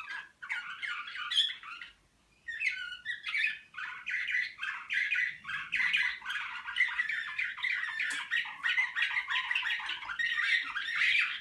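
Canaries sing loud, rapid trilling songs close by.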